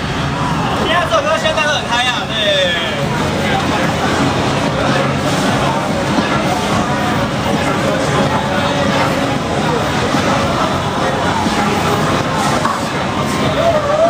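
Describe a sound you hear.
Loud electronic dance music plays from an arcade machine.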